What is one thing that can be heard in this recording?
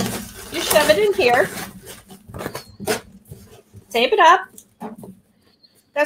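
A cardboard box scrapes and taps against a table.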